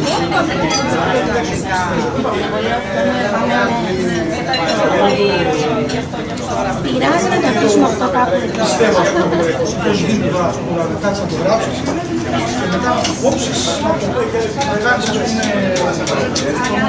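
A crowd of adult men and women chat and talk over each other outdoors.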